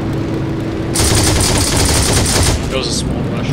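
A machine gun fires a rapid, loud burst.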